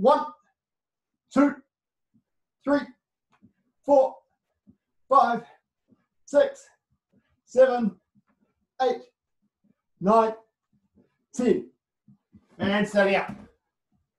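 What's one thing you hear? A man counts aloud in short, strained bursts, close by.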